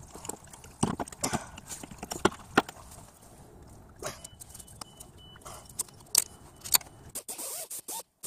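Metal tools clink and tap against engine parts.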